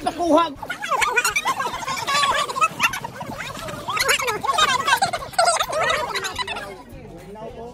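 Several young people talk and laugh close by, outdoors.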